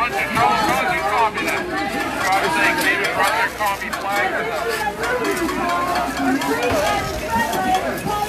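A crowd of men and women talk and call out outdoors.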